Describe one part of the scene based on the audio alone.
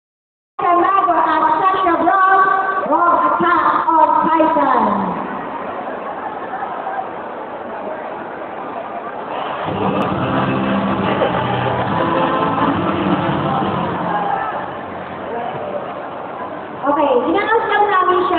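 A live band plays music loudly in a large echoing hall.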